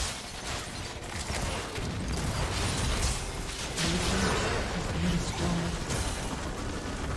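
Spell blasts and hits crackle in a game battle.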